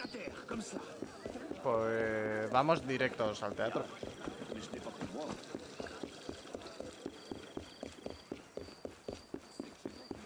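Quick footsteps run on cobblestones.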